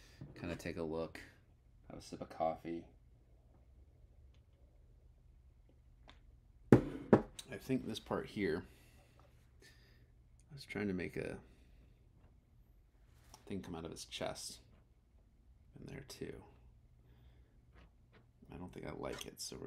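A man talks calmly and close by, in bursts with pauses.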